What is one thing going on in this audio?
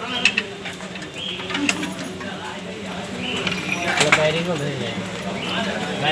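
A socket wrench ratchets on a bolt.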